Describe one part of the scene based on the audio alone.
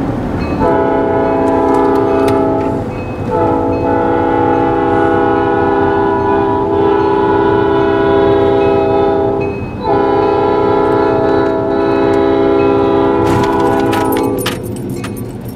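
A locomotive horn blares loudly in long blasts nearby.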